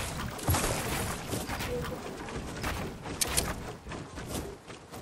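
Footsteps thud quickly across wooden planks.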